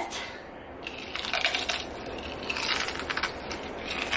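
Oil sizzles in a hot pan.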